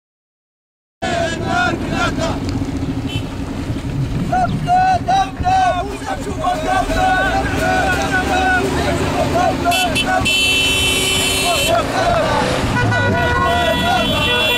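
Men cheer and shout loudly from atop a vehicle.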